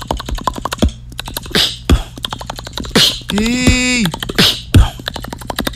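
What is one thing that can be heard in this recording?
A young man beatboxes close to a microphone, with sharp clicks and hissing bursts.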